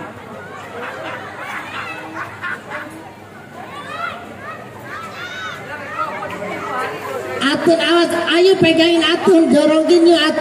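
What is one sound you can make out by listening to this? Children shout and cheer excitedly outdoors.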